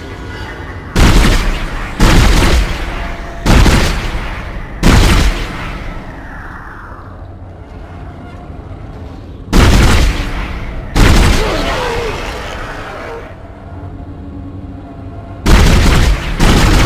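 A heavy gun fires single loud blasts, each followed by a rumbling echo.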